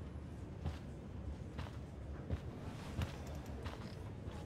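Footsteps walk away on a hard floor.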